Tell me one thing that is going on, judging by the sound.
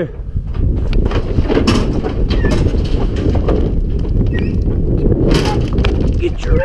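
A metal gate clanks and rattles.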